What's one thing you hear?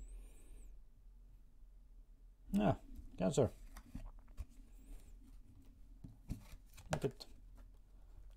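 Cards slide and tap on a table.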